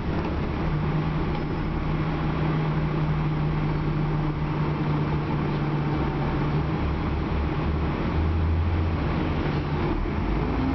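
A bus rattles and creaks as it rolls along.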